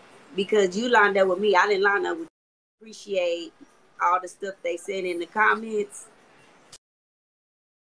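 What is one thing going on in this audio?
A woman speaks with animation through a phone microphone.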